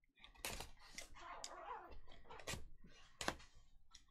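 A blade slices through packing tape on a cardboard box.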